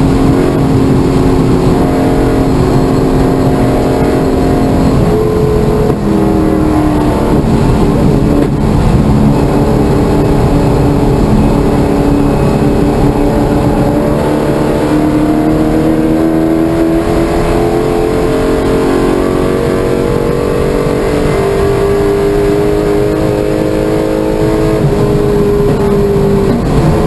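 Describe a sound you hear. A car engine roars loudly from inside the cabin, rising and falling in pitch as gears shift.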